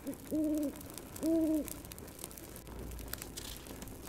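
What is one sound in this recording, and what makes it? An owl's wings flap as it flies past.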